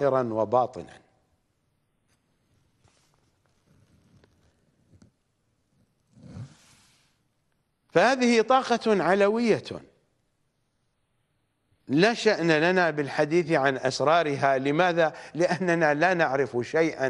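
A middle-aged man speaks with animation into a microphone, pausing between phrases.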